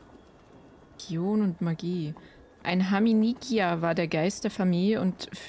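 A young woman talks with animation into a nearby microphone.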